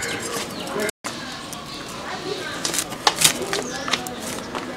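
Cauliflower leaves rustle and crackle as they are pulled off.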